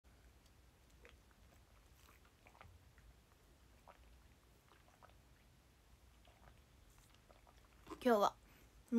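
A young woman sips through a straw.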